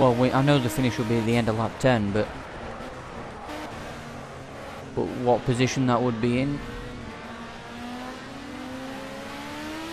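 A racing car engine drones steadily and rises in pitch as the car speeds up.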